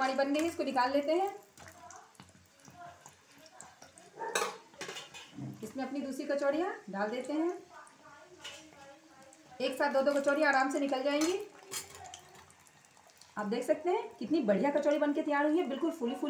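A metal strainer clinks against a pan.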